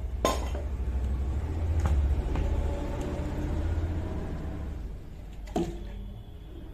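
A plastic bottle knocks and crinkles close by.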